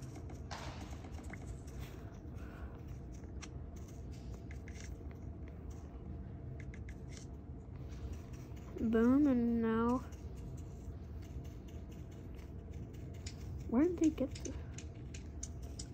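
Fingers tap softly on a touchscreen.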